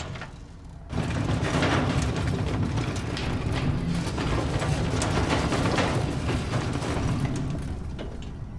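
A heavy metal bin rumbles and scrapes along the ground as it is pushed.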